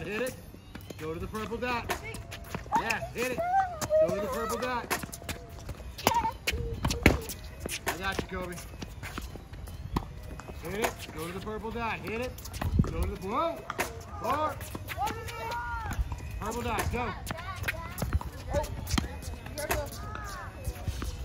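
Tennis balls are struck with rackets in a quick back-and-forth.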